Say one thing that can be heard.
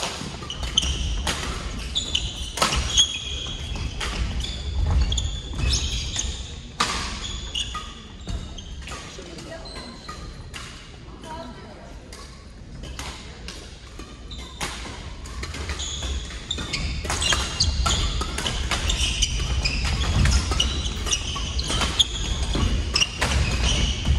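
Rackets strike shuttlecocks with sharp pops in a large echoing hall.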